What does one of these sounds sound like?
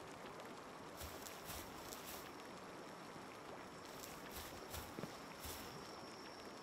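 Footsteps thud softly on grass.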